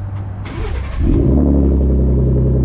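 A truck engine starts up with a roar.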